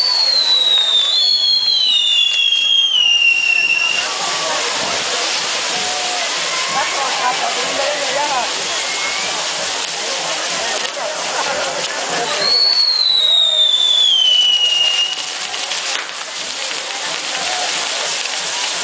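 Fireworks on a tower hiss and crackle.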